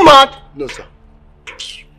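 A young man exclaims in dismay, close by.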